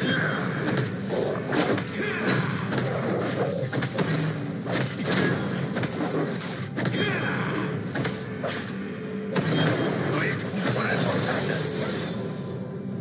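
Video game spell effects crackle and thump in quick bursts.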